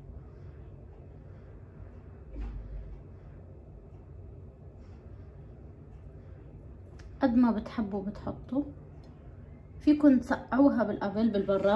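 Thick syrup trickles and drips softly onto a pastry.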